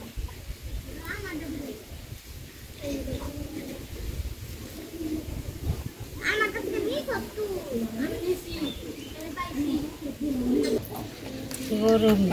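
A woman talks casually nearby.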